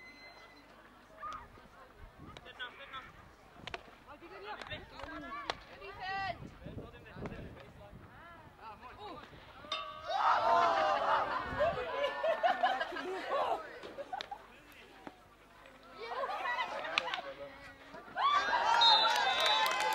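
Field hockey sticks strike a ball with sharp clacks.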